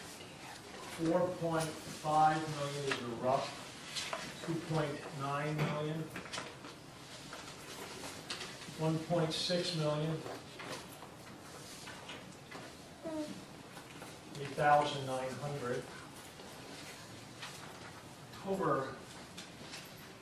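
A man speaks to a group, pausing between phrases.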